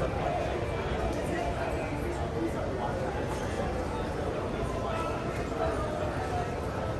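A crowd murmurs indistinctly in a large echoing hall.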